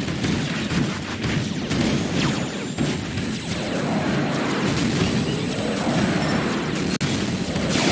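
Jet engines roar as a robot flies.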